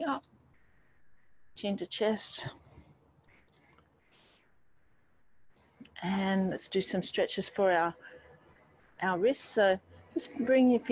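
A woman speaks calmly through a microphone, as on an online call.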